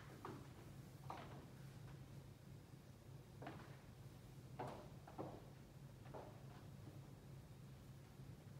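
Footsteps sound on a wooden stage in a large hall.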